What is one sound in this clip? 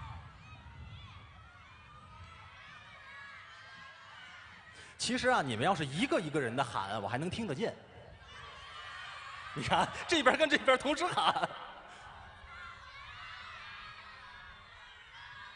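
A large crowd cheers and screams outdoors.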